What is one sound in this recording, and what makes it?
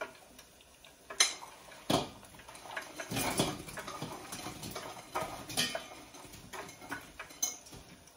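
A bowl clinks against a counter.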